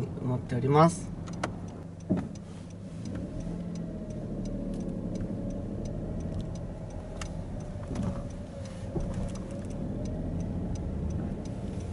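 A small car's engine hums steadily as it drives.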